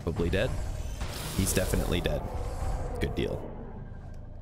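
A plasma gun fires with a loud crackling, sizzling blast.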